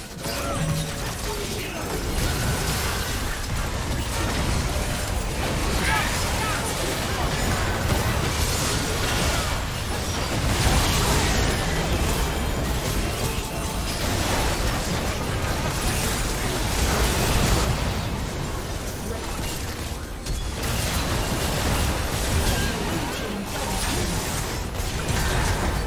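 Game spell effects crackle and burst in a busy fight.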